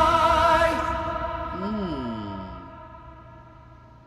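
Music with singing plays and fades away.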